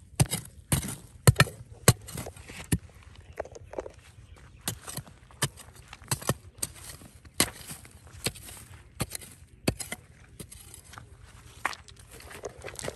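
A metal bar strikes and scrapes against rocks and stony soil.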